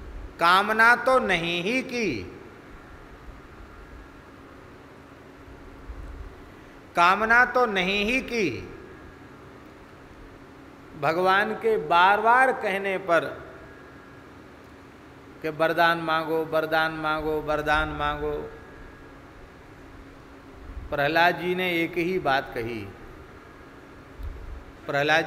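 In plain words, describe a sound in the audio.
A middle-aged man speaks slowly through a microphone in short phrases with long pauses.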